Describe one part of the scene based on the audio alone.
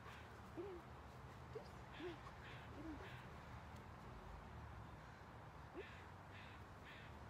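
A woman gives short commands to a dog nearby.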